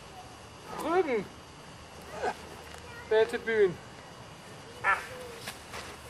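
An elderly man speaks briefly and calmly nearby.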